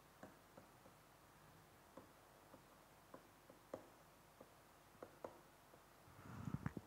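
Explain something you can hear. A pen taps and scratches softly on a writing surface.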